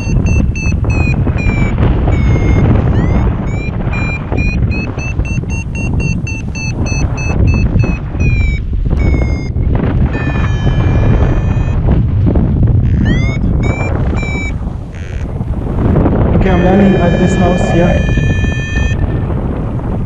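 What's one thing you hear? A flight instrument beeps in quick rising and falling electronic tones.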